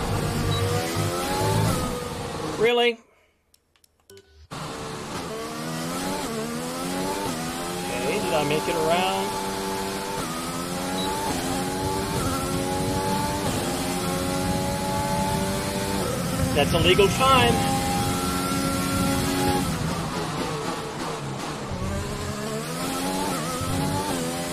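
A racing car engine whines high, rising in pitch through each gear and dropping at each shift.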